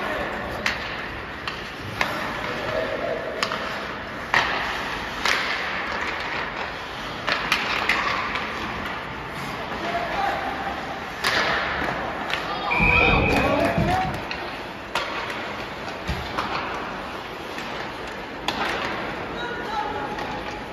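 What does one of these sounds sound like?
Skates scrape and carve across the ice in a large echoing rink.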